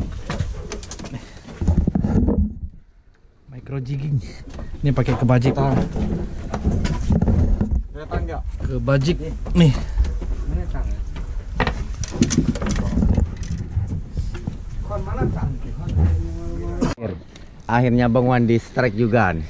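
A man talks close by with animation.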